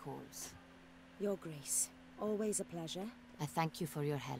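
A young woman speaks calmly and warmly.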